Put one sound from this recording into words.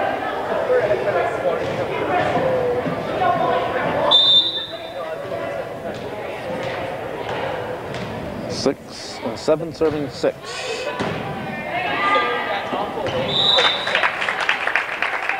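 Players and spectators chatter and call out in an echoing gym.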